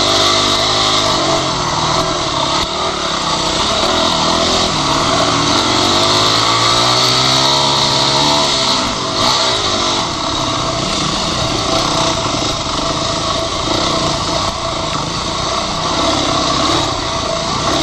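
A dirt bike engine revs loudly close by, rising and falling in pitch.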